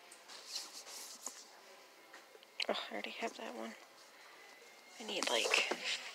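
A paperback book scrapes and slides against other books as it is pulled from a shelf.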